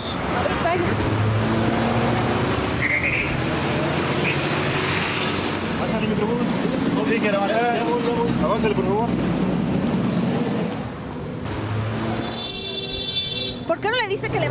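Traffic rumbles by on a busy street.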